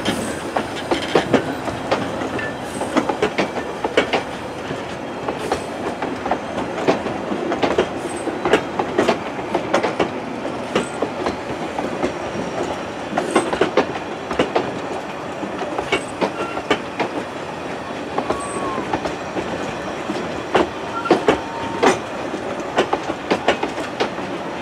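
Steel wheels click and clatter over rail joints.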